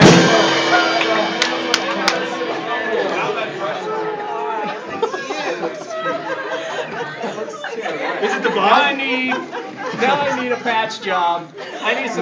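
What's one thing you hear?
A crowd of people chatters and laughs nearby.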